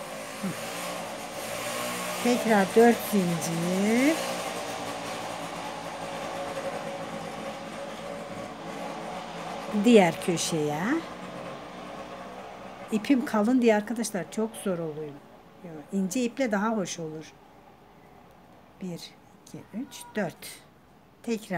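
Knitting needles click softly as yarn is worked.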